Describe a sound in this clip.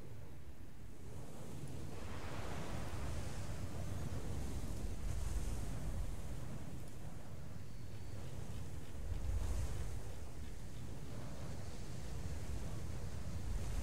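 Sea waves wash and rumble steadily.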